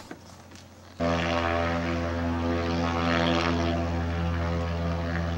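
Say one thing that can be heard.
A floatplane engine drones loudly as the plane skims across the water.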